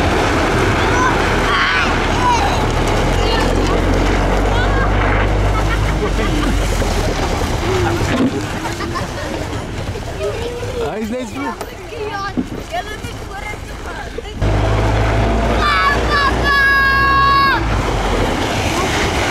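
Children shout and laugh excitedly close by.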